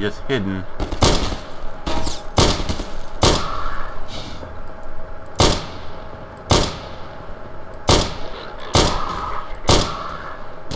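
Gunshots ring out one at a time, each with a short echo.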